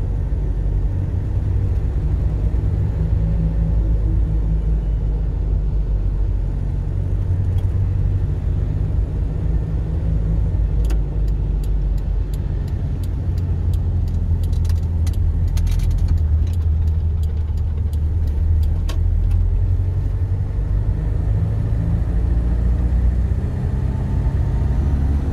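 A car engine hums steadily with a low rumble while driving.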